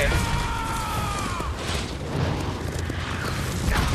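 A meteor whooshes overhead.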